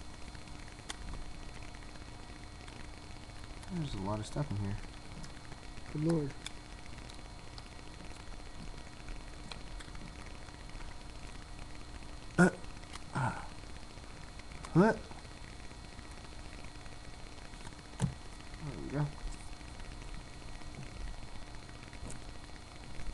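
Small objects click and rustle in a young man's hands.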